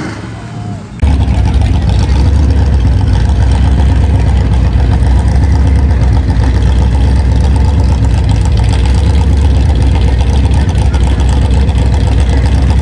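A car engine revs hard with a deep, steady roar.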